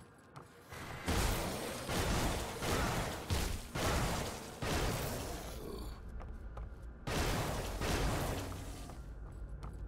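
Electric blasts crackle and boom in loud bursts.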